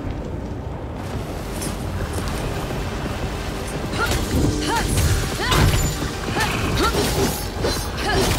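Weapons clash and magic blasts crack in a fight.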